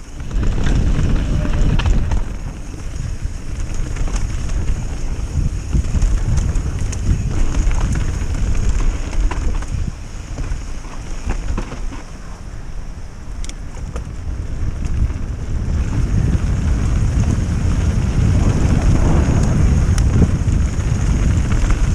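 Tyres crunch and rattle over a dirt trail.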